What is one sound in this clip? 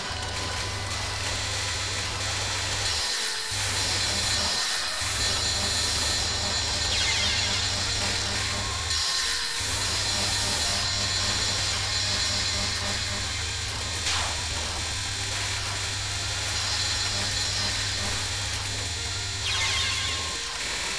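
Video game music plays with a driving beat.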